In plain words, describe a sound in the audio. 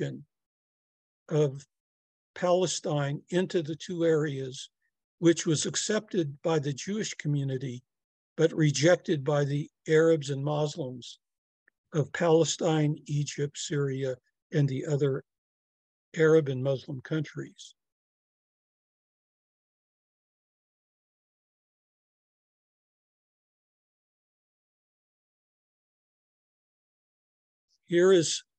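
An elderly man speaks calmly through a microphone over an online call.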